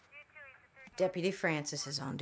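A middle-aged woman speaks calmly.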